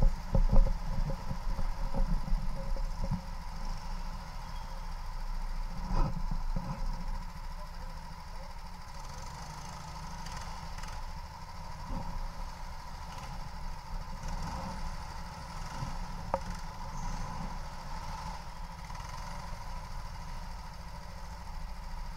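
Other go-kart engines whine nearby.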